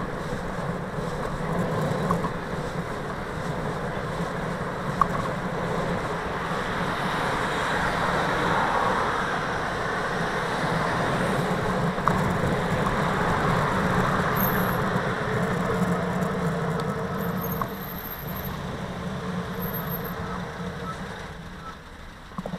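Wind rushes past a moving cyclist.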